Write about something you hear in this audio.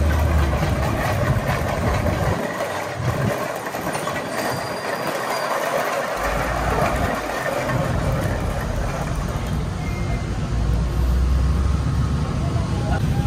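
A long pole scrapes and drags along concrete.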